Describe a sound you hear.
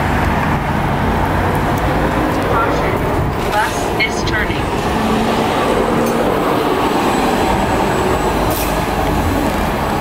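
An electric bus hums as it drives past close by.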